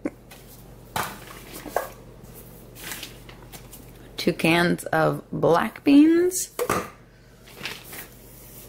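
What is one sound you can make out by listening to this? A fabric bag rustles as items are taken out.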